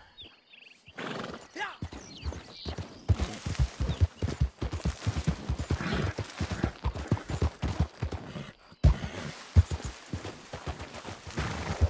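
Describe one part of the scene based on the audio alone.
Hooves clop steadily on rough ground as a horse gallops.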